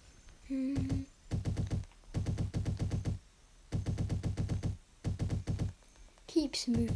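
A large creature's feet patter rapidly on sand in short bursts.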